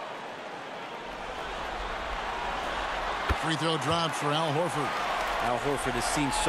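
A crowd cheers as a shot goes in.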